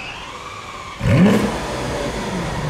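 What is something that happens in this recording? A sports car engine revs loudly once.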